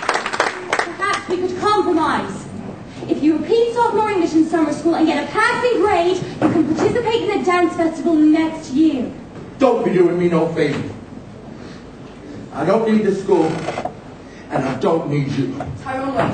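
A young man speaks on a stage.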